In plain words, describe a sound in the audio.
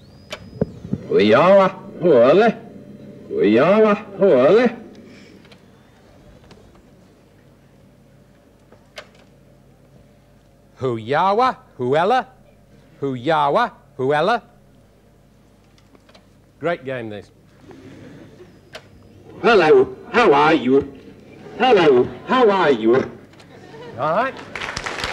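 A middle-aged man speaks slowly into a microphone in short phrases.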